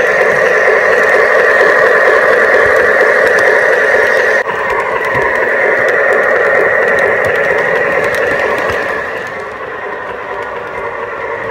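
Model train wheels click over rail joints.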